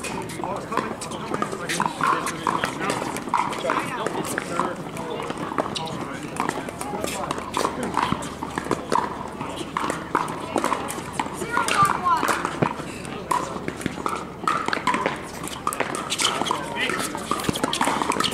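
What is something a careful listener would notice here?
Paddles pop against a plastic ball in quick rallies.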